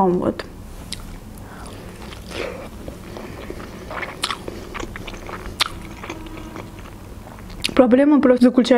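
A young woman chews and munches crunchy food close to a microphone.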